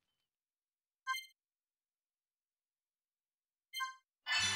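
A short electronic menu chime sounds twice.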